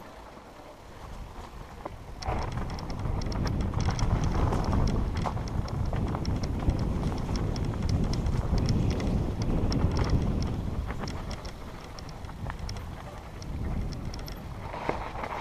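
Bicycle tyres rumble and crunch over a rough dirt trail.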